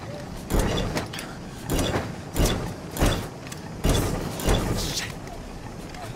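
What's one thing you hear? Metal clanks and knocks as a mechanism is worked by hand.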